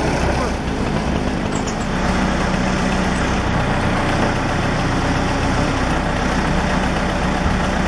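A heavy machine's diesel engine rumbles steadily nearby.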